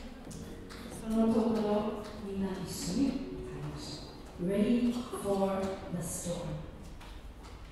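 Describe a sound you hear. A woman sings into a microphone.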